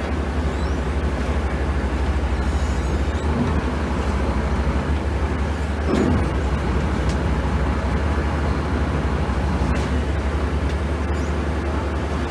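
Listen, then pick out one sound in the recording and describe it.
A boat engine drones steadily with a low rumble.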